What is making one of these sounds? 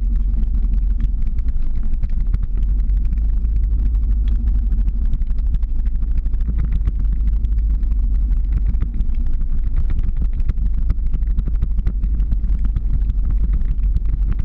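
Ski pole tips click and scrape against the road.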